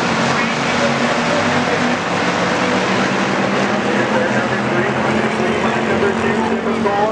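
Race car engines roar loudly as the cars speed around a track.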